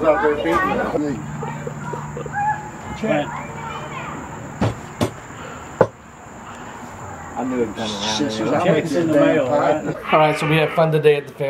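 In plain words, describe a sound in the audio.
Several men talk and laugh nearby.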